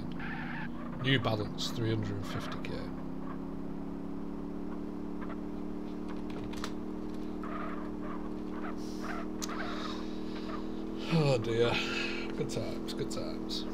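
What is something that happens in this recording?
A man speaks briefly and casually close to a microphone.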